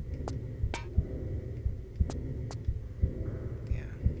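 Hands clank on a metal grate while climbing.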